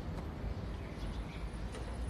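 Footsteps scuff slowly on a paved street.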